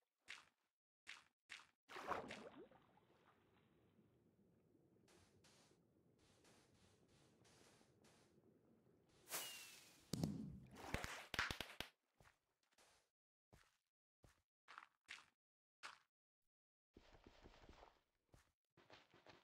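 Blocks are set down with short, muffled thuds.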